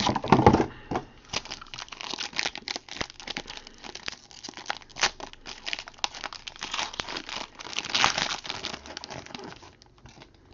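A foil pack crinkles and rips open.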